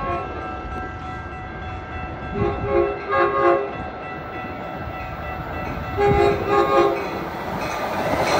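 A train rumbles on the tracks as it approaches.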